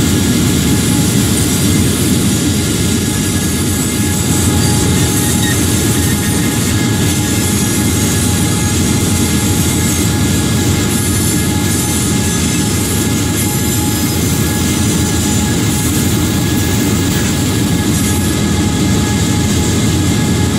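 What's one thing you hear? Train wheels clatter and roll along the rails.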